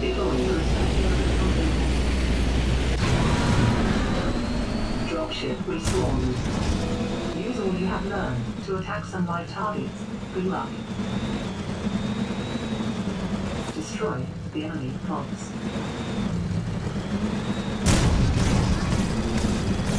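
A game combat buggy's engine hums and whines as it drives.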